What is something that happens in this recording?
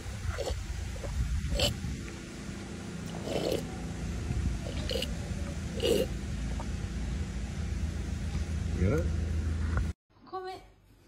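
An ape chews and tears at a coconut husk up close.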